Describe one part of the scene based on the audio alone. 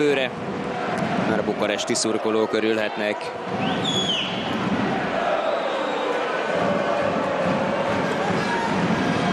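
A large indoor crowd cheers and chants, echoing through an arena.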